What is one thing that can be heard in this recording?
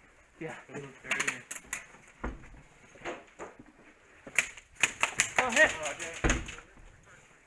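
An airsoft gun fires rapid snapping shots.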